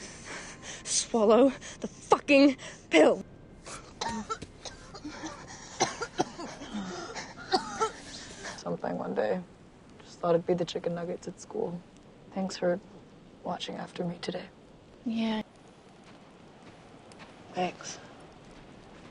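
A young woman speaks urgently, with strong emotion.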